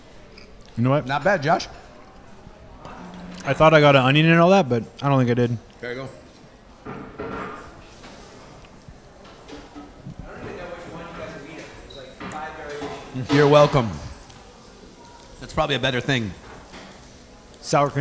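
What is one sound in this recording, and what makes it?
A second man talks into a microphone in reply.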